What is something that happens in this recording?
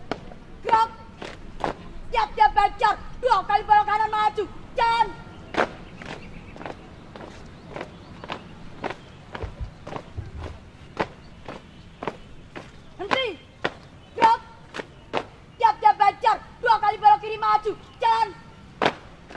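A group of young people shouts a marching chant in unison.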